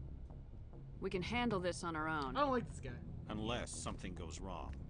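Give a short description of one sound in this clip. A young woman speaks calmly and clearly.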